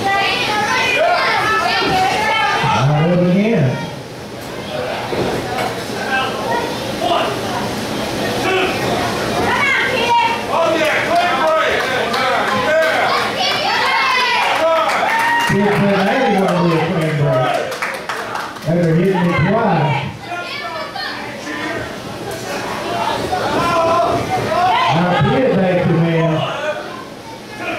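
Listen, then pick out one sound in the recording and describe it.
A crowd chants and shouts loudly in an echoing hall.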